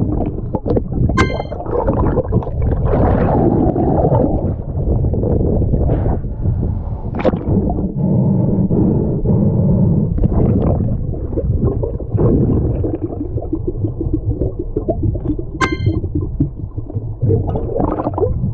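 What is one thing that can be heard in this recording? Water bubbles and rumbles loudly around a diver underwater.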